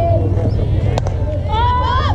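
A bat hits a ball with a sharp crack.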